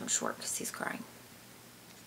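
A young woman speaks quietly up close.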